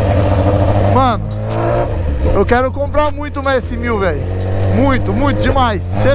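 A motorcycle engine revs up and down sharply, again and again.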